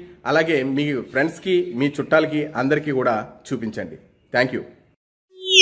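A man speaks with animation close to the microphone.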